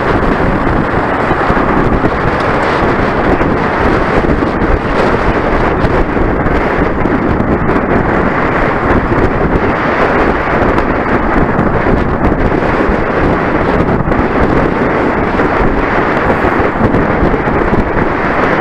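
Wind rushes loudly and steadily past the microphone.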